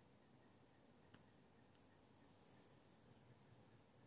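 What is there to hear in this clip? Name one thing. A man exhales smoke with a quiet breath.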